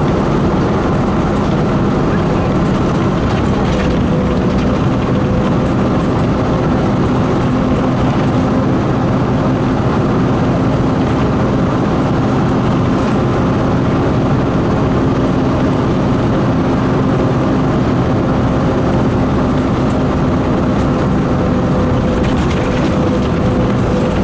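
Tyres roll steadily over a road.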